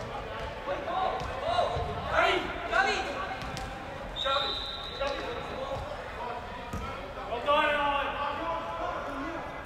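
Young girls shout and call out to each other across a large echoing hall.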